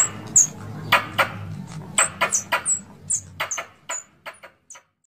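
A squirrel gives sharp, high chirps over and over, close by.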